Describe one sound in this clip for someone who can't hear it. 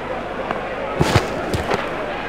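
A cricket bat sharply strikes a ball.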